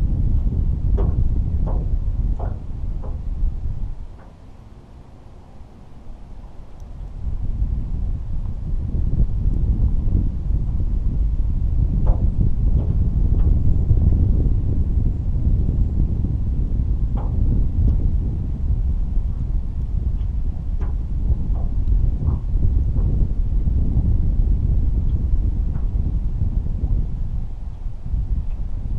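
Wind buffets the microphone outdoors on open water.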